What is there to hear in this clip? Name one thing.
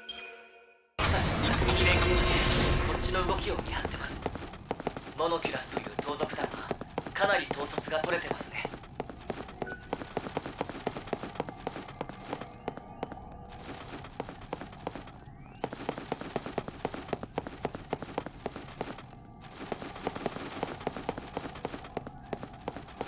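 Quick footsteps patter on a hard stone floor.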